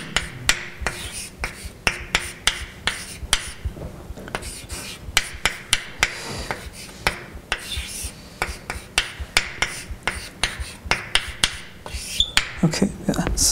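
Chalk taps and clicks rapidly on a blackboard.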